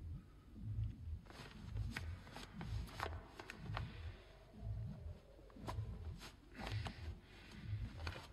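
Leather work gloves rustle and creak as they are pulled onto hands.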